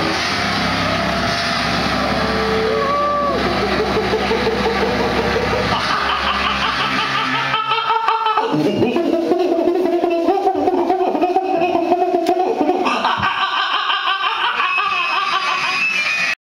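An electric guitar plays loudly through an amplifier.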